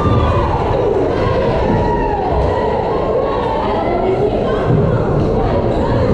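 A volleyball thuds as it is hit.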